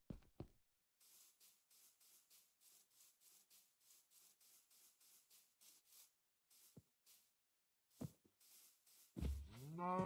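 Footsteps patter softly on grass and dirt.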